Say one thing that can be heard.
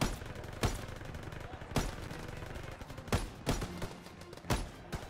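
A rifle fires single loud shots outdoors.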